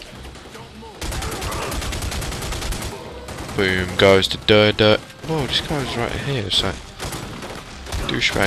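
A machine gun fires in rapid bursts.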